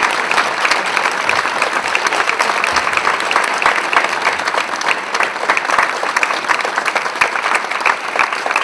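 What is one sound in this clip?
An audience claps and applauds steadily in a large hall.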